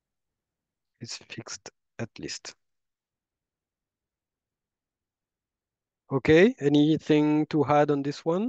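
A man talks calmly into a microphone, close by, with pauses.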